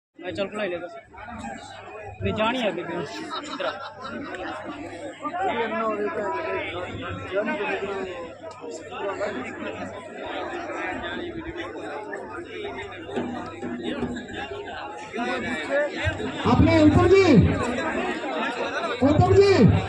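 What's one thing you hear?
A large outdoor crowd chatters and calls out throughout.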